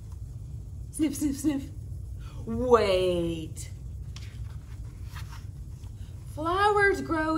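A young woman reads a story aloud expressively, close by.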